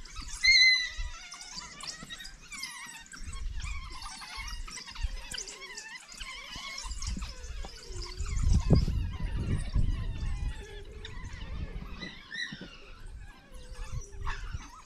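A pack of wild dogs twitters and chirps with high, bird-like calls.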